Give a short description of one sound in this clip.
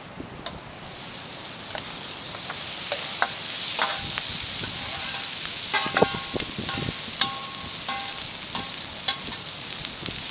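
A metal spatula scrapes and clinks against a metal pan.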